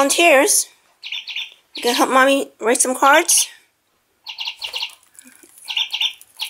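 A budgie chirps and twitters close by.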